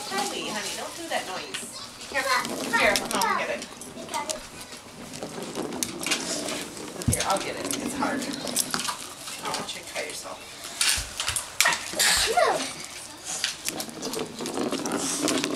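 A dog's claws click on a wooden floor.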